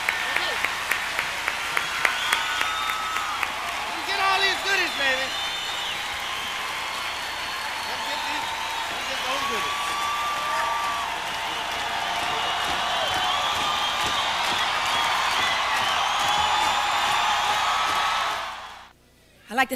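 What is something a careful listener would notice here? Whistles ring out from a cheering crowd.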